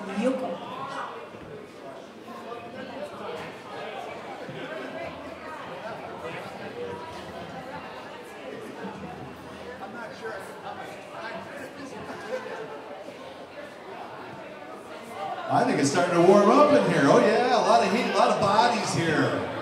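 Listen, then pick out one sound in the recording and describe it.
A live band plays rock music through loudspeakers in a large room, getting much louder near the end.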